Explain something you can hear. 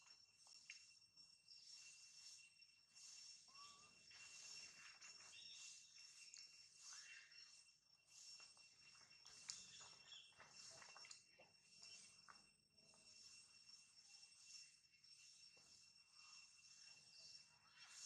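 Dry leaves rustle under shifting monkeys.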